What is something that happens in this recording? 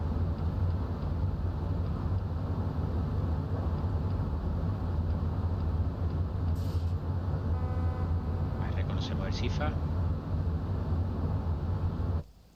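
Rain patters on a train windscreen.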